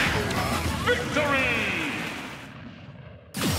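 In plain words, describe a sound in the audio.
A loud game blast whooshes and rumbles, then fades.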